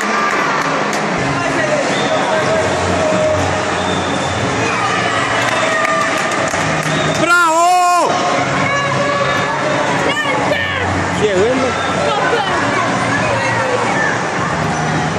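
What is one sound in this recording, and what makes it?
Children splash and swim in pool water.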